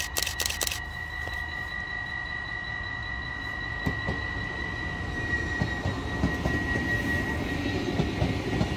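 A train rumbles past close by, growing louder.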